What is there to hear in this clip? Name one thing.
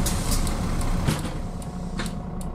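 Bus doors close with a hiss and a thud.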